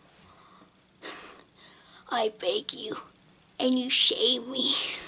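A child speaks animatedly close to the microphone.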